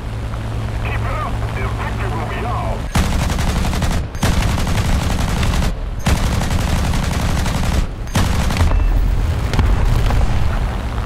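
An aircraft engine drones steadily throughout.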